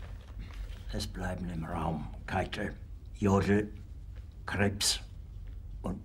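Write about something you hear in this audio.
An older man speaks quietly and tensely, close by.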